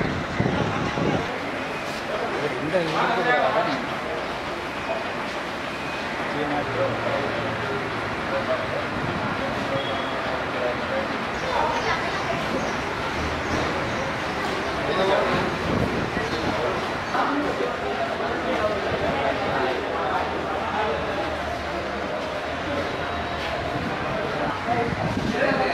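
Several men talk among themselves in a group.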